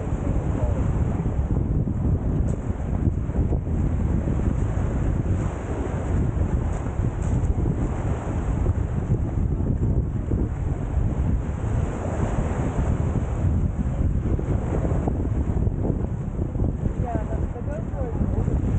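Wind blows steadily and rumbles outdoors.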